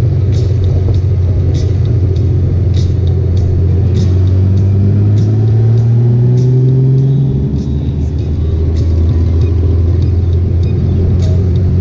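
A motorcycle engine hums steadily, rising in pitch and then dropping as it shifts gear.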